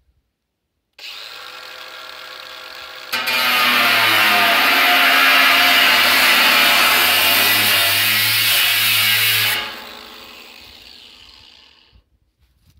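An angle grinder whirs at high speed, then winds down.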